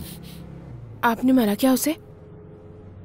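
A woman speaks briefly and with animation close by.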